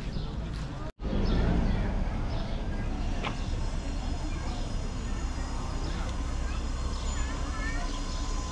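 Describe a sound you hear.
A small road train drives past with a low engine rumble.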